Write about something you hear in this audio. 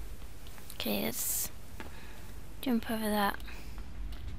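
A young woman speaks with animation through a headset microphone.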